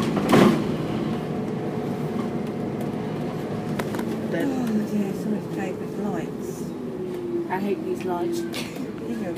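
A bus engine hums and whines steadily from inside, its pitch shifting as it slows and speeds up.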